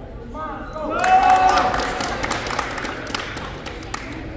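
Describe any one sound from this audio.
Players and spectators cheer loudly.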